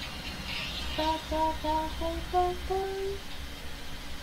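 A young woman sings softly close to a microphone.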